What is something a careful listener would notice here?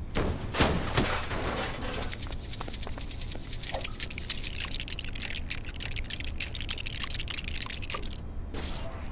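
Small coins jingle and clink as they are picked up quickly.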